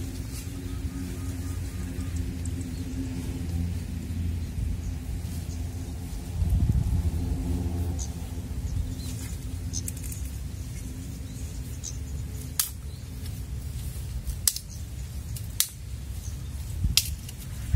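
Wind rumbles and rustles the grass outdoors.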